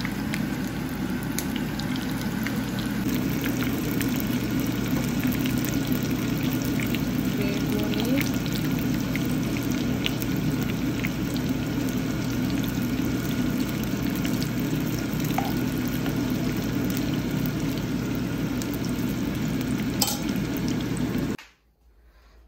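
Oil sizzles and crackles loudly as food fries in a pan.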